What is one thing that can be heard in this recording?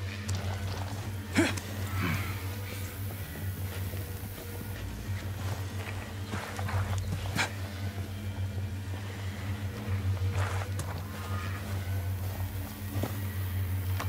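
Footsteps crunch over dry grass and gravel.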